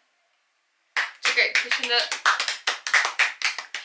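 Young women clap their hands quickly.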